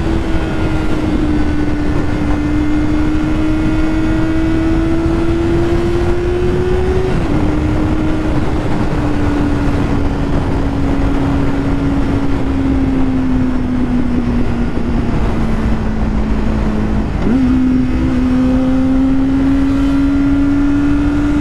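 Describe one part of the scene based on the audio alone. Wind roars past loudly at speed.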